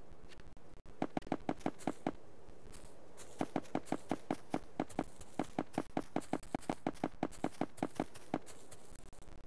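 Blocks snap into place in a quick, steady rhythm of soft pops.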